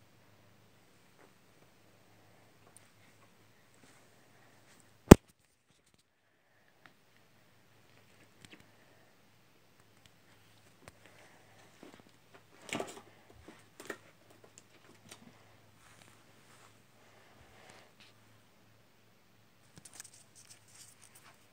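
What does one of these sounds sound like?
A small animal rustles about under a blanket.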